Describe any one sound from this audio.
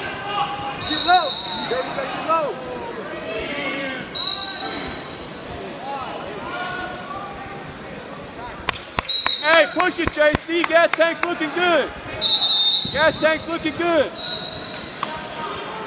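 A referee's whistle blows in short blasts.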